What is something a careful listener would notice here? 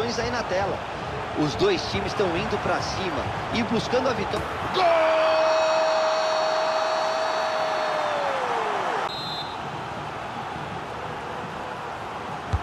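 A large stadium crowd roars and cheers.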